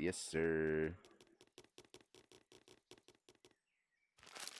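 Small footsteps patter quickly on grass.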